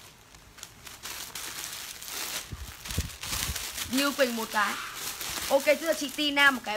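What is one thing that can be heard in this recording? Plastic wrapping rustles and crinkles as clothes are handled.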